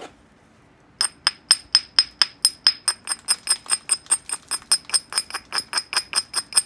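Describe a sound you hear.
A hand tool flakes a stone edge with rapid, sharp ticks.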